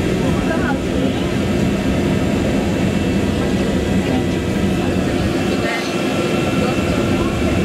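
A submarine's motors hum.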